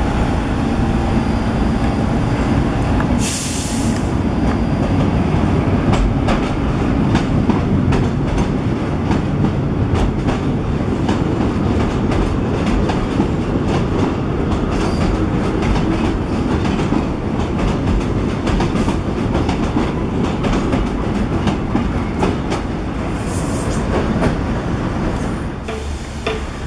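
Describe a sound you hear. A train rumbles and clatters loudly along elevated tracks.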